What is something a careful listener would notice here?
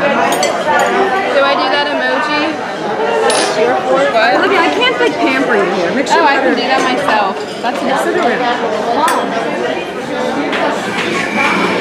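Cutlery clinks against plates.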